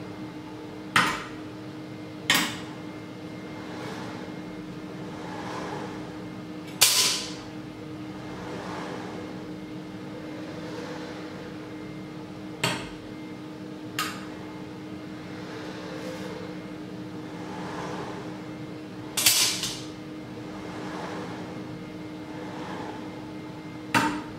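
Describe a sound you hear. Metal tools click against a wooden table.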